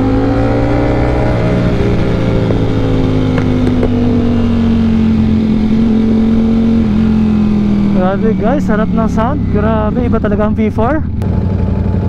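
A motorcycle engine drones and slowly drops in pitch as the bike slows.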